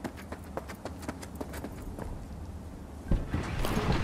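A car door opens with a thud.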